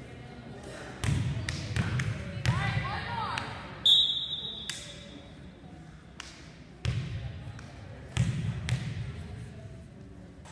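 Young girls call out and cheer in bursts.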